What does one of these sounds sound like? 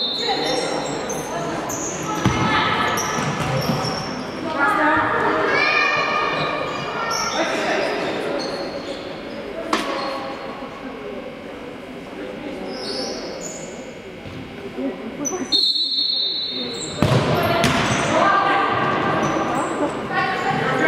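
Women players shout to each other in a large echoing sports hall.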